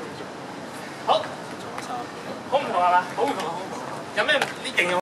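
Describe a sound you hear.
A young man talks loudly outdoors.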